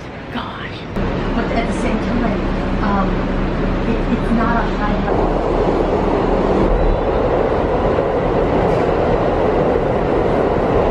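A subway train rumbles and rattles along the tracks.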